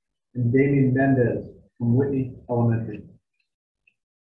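A man speaks briefly and calmly through an online call.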